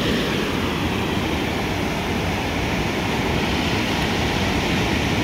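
Waves crash and wash up onto a beach.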